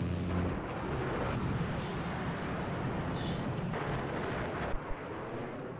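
A fighter jet's engine roars in flight.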